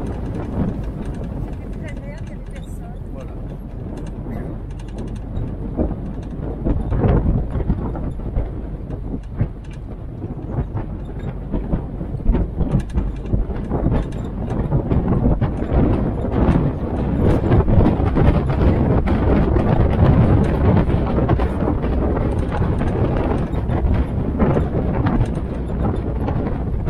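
An open military jeep engine drones as it drives along.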